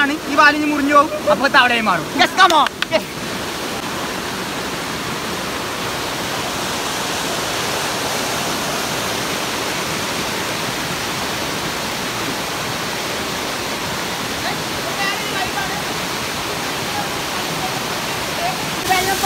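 Water rushes and splashes loudly over rocks.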